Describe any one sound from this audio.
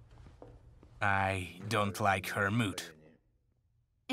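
A middle-aged man speaks tensely close by.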